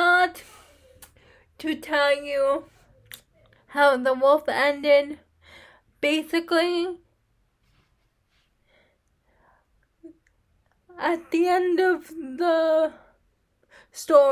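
A young woman talks close to the microphone with animation, in short bursts with pauses.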